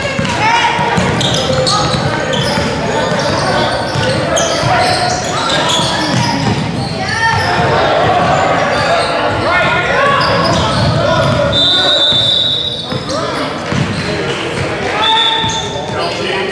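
Sneakers squeak sharply on a wooden gym floor.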